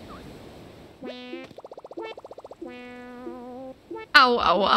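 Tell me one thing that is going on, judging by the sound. A game character babbles in a high, chirpy voice.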